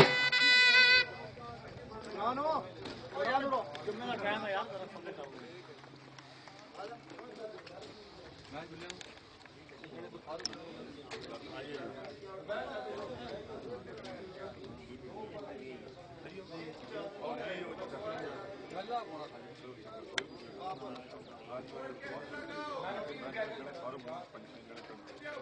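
Several men talk and call out at once nearby.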